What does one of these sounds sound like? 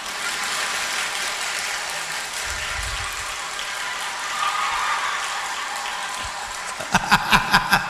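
A crowd of men laughs together.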